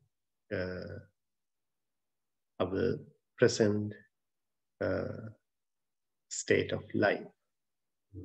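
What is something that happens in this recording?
A man speaks calmly and slowly, close to the microphone, with pauses between phrases.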